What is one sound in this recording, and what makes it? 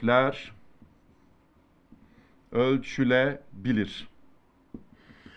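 A marker scratches on a whiteboard.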